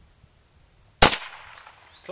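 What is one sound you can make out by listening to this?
A pistol fires a single loud shot outdoors.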